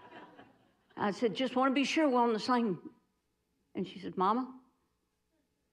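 A woman speaks with animation into a microphone in a large room.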